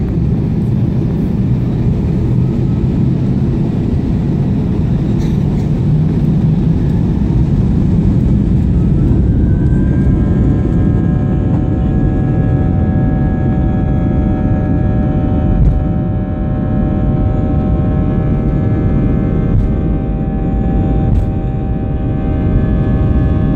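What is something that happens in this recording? A jet engine roars loudly and steadily close by.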